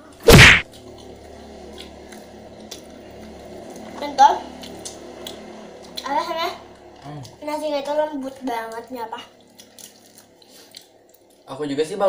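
Someone chews and smacks food close by.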